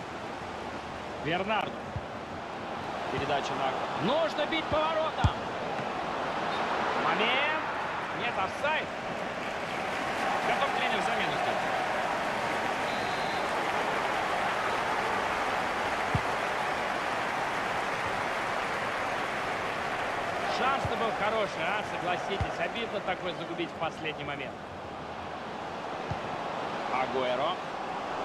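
A large stadium crowd roars and cheers steadily.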